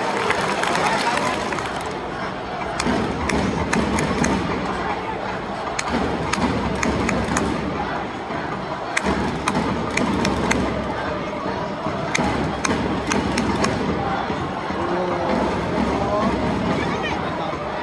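A large stadium crowd murmurs and chatters steadily outdoors.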